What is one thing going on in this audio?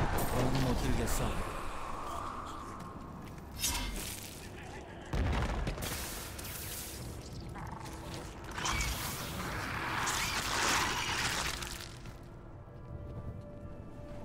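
Magical spell effects whoosh and crackle in bursts.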